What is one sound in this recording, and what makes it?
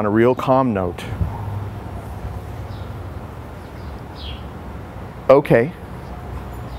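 A man speaks calmly in short bursts nearby.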